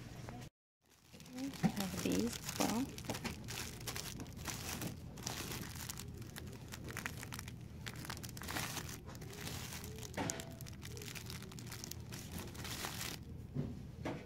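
Plastic wrapping crinkles as rolls are handled.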